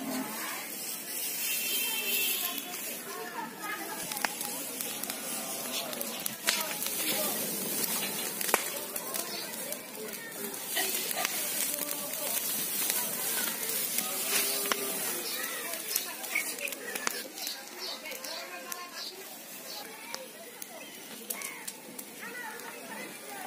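Dry straw crackles and pops as it burns.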